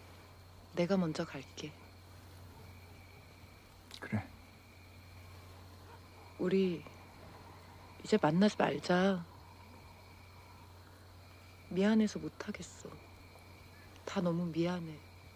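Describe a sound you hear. A young woman speaks softly and quietly, close by, in short phrases.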